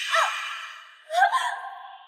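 A young woman cries out close by.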